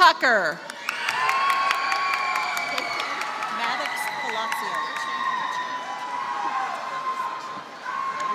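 A crowd cheers and whistles.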